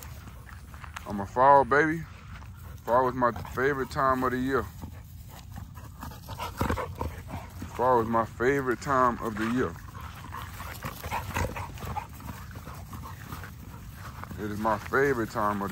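Dogs' paws rustle through dry grass as they romp.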